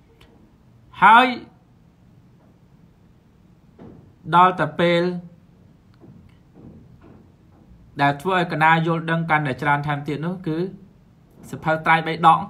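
A young man talks warmly and with animation into a close microphone, as if on an online call, with pauses between phrases.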